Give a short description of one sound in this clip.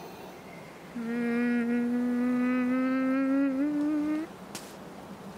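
A young boy lets out a long, rising, straining groan.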